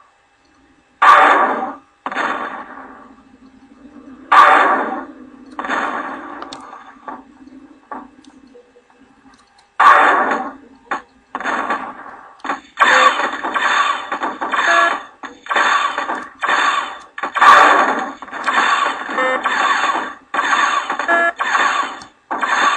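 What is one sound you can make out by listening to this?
Game explosions boom and crackle.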